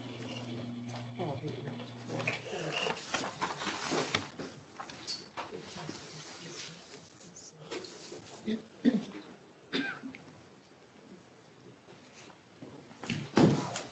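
A binder rustles and taps on a desk.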